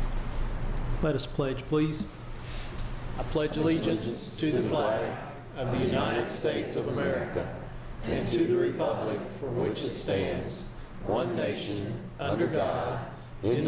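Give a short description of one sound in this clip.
A group of men and women recite together in unison in a large room.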